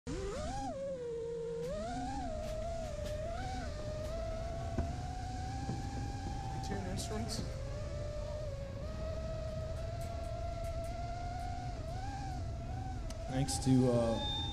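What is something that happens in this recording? A drone's motors whine steadily close by, the pitch rising and falling as it speeds up and slows down.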